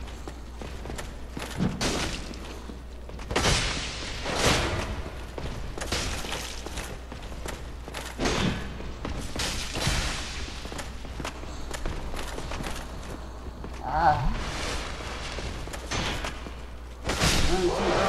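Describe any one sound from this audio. Metal weapons clash and strike armour in a fight.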